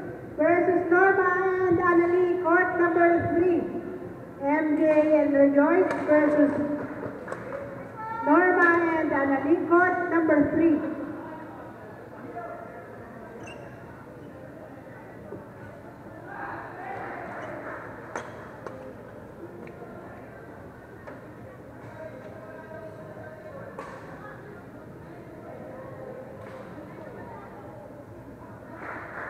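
Badminton rackets strike a shuttlecock in a large hall.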